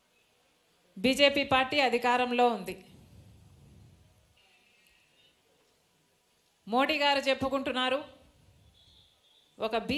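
A woman speaks with animation into a microphone, heard through loudspeakers.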